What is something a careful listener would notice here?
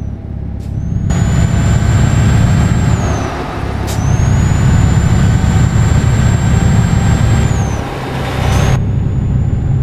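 Tyres roar loudly on the road.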